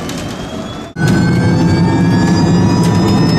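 An electric motor whines loudly from inside a car.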